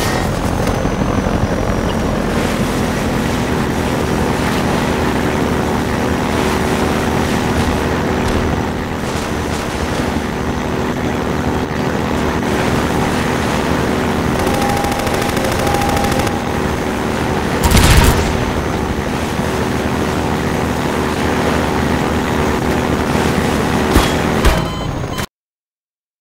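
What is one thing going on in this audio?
An airboat engine drones steadily.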